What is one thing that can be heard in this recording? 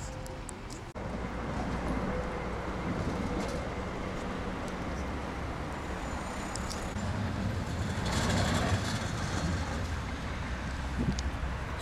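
Wind rushes and buffets outdoors.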